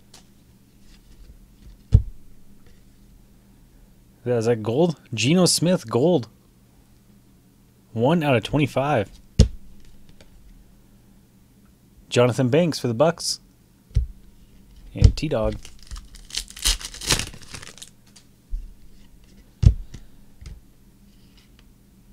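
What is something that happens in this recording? Trading cards slide and tap against each other as they are shuffled.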